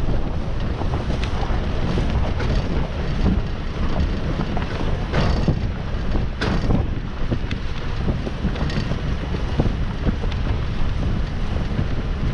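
Tyres crunch over dirt, stones and dry leaves, with frequent knocks and bumps.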